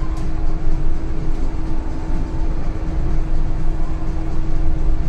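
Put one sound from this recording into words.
A bus engine hums steadily while it drives.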